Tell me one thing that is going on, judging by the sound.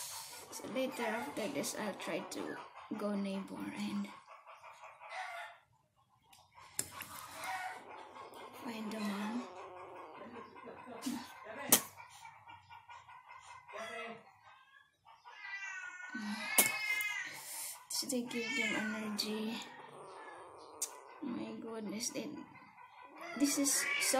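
Kittens meow loudly and repeatedly, close by.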